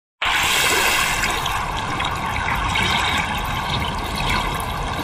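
Water splashes and churns steadily.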